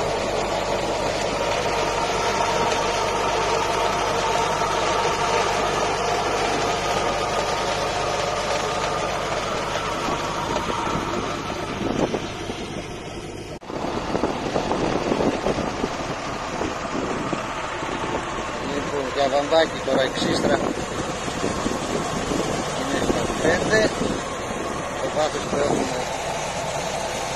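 A planter clatters and rattles as it rolls over the soil.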